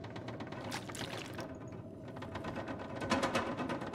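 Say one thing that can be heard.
Someone gulps down water.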